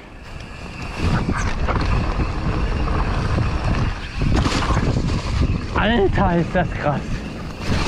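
A bicycle rattles over bumps on a rough trail.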